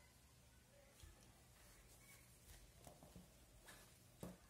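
Knitting needles tap and click softly.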